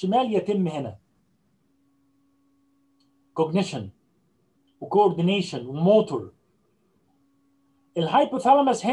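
An older man speaks calmly through an online call, in short phrases with pauses.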